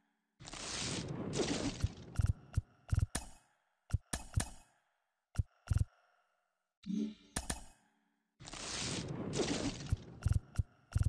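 A loud whooshing burst sweeps in as a card pack opens.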